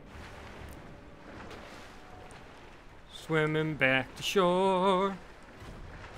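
Water splashes as a figure swims.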